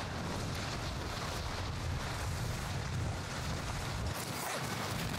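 Wind rushes loudly past during a fall.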